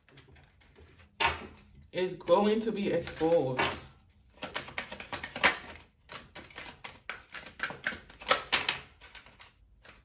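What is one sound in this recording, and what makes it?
Playing cards shuffle with quick soft flicks.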